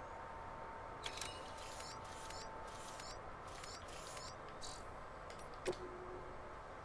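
Short electronic menu beeps and chirps sound again and again.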